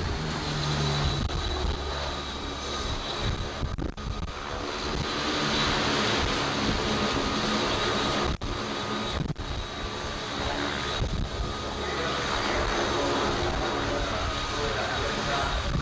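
Propeller engines roar steadily as an aircraft taxis nearby.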